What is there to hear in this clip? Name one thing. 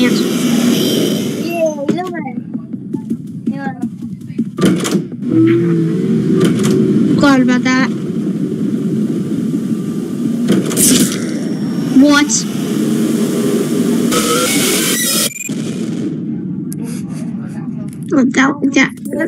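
A boy talks excitedly over an online call.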